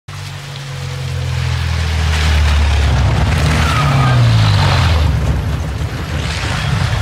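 A vehicle engine rumbles as it pulls up close.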